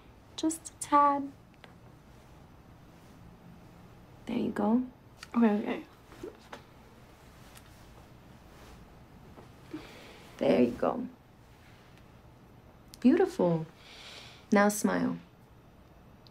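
A young woman speaks quietly in short phrases, close by.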